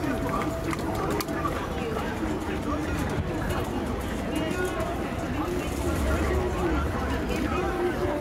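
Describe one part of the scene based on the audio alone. Many footsteps shuffle on pavement.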